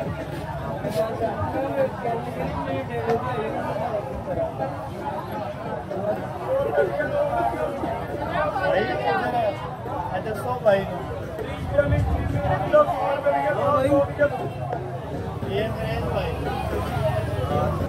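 A busy crowd murmurs in the background.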